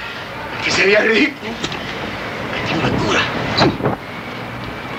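Men scuffle and thud about in a room.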